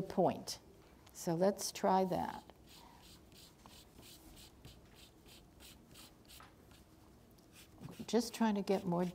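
An elderly woman speaks calmly, close to the microphone.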